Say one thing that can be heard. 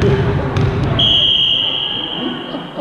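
A whistle blows one long shrill blast.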